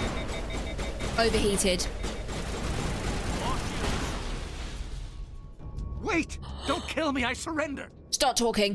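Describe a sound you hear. A young woman speaks close to a microphone with animation.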